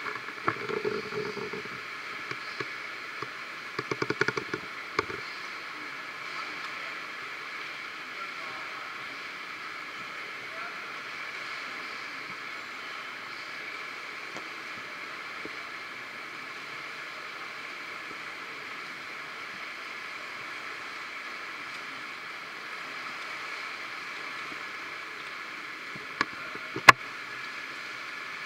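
A swimmer splashes steadily through the water.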